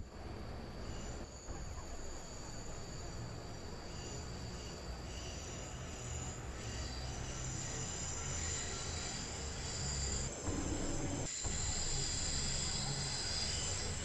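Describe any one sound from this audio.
A diesel train engine rumbles steadily as the train rolls slowly along the track.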